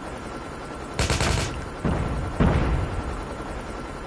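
Gunfire rings out in short bursts.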